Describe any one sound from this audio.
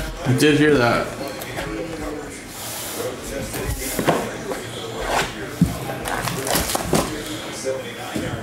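Cardboard boxes knock and slide against each other.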